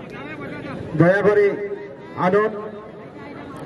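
Men in a crowd shout loudly.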